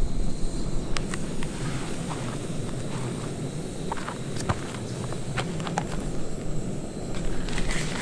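Footsteps crunch on rocky ground.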